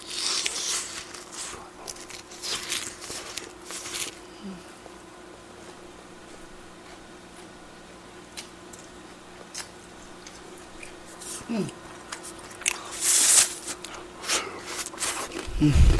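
A young man chews and slurps food close to a microphone.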